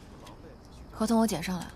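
A young woman speaks sharply, close by.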